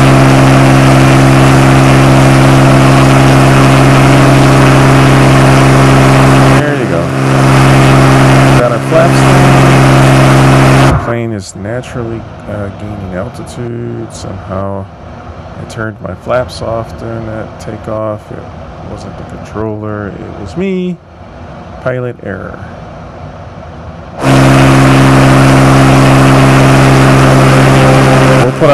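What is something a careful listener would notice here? A small propeller plane's engine drones loudly and steadily.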